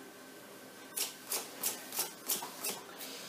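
Playing cards tap and slide against each other as they are shuffled by hand.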